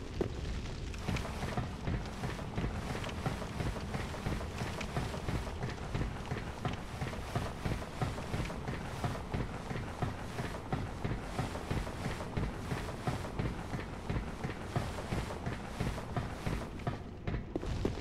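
Armored footsteps clank steadily on stone steps in an echoing space.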